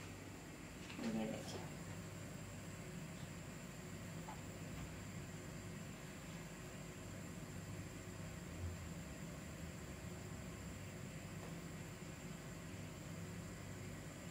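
A spoon softly scrapes a paste onto bread.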